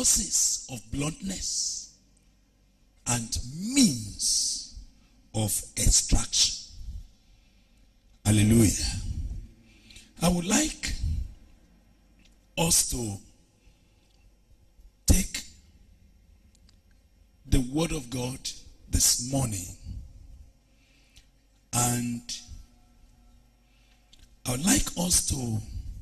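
A man preaches with animation into a microphone, in bursts with pauses.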